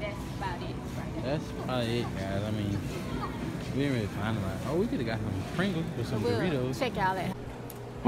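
A young girl chatters and sings close by.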